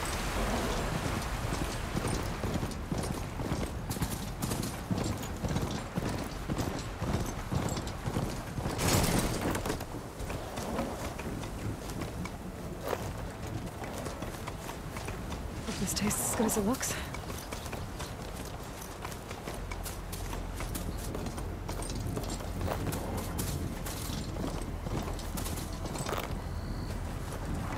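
A mechanical beast's metal feet clatter steadily over the ground.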